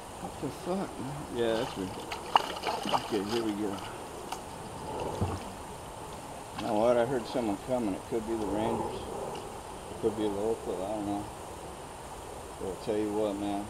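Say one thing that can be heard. A kayak paddle splashes in the water.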